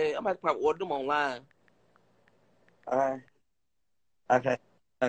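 A young man speaks with animation through a phone's microphone, in bursts with pauses.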